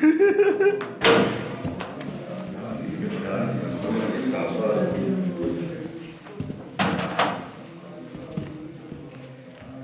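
Several men talk and shuffle about.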